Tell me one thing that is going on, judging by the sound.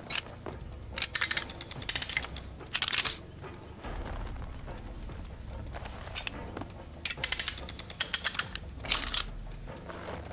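A metal trap clanks and rattles as it is pried open.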